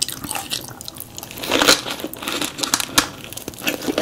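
A bite tears through a soft, crisp roll.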